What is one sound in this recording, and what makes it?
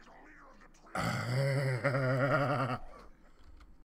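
A large monster lets out a deep, growling roar.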